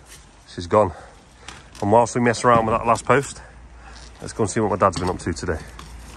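A shovel scrapes against soil and stones.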